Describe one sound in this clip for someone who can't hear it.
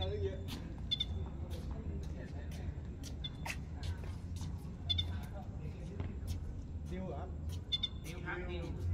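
Sneakers squeak on the court surface.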